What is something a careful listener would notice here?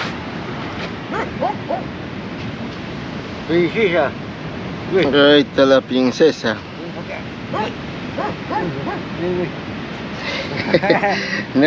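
An adult man talks with animation close by.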